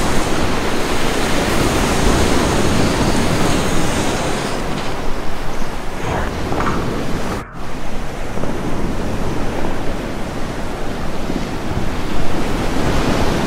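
White water rushes and roars loudly close by.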